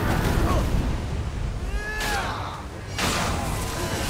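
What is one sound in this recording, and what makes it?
Magic blasts burst with bright whooshing rushes.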